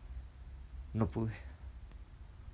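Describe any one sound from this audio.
A young man sighs heavily close by.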